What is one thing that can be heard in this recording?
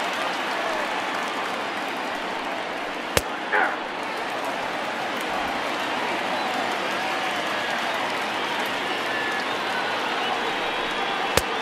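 A large crowd murmurs steadily throughout.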